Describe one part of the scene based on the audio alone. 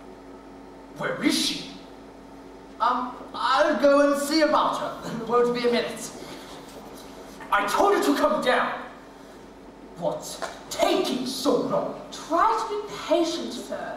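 A man and a woman speak with animation through stage loudspeakers in a large hall.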